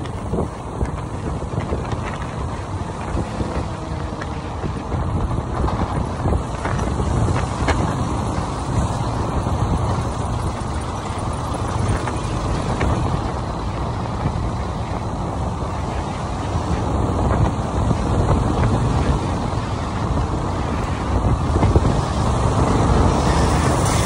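A motorcycle engine runs as the bike rides through traffic.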